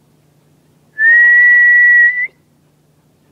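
A dog lets out a loud, high whine.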